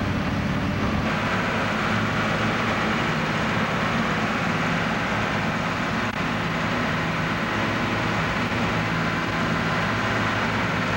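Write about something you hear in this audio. Sand hisses as a slinger conveyor hurls it in a stream.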